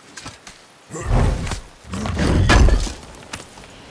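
A heavy chest lid thuds and creaks open.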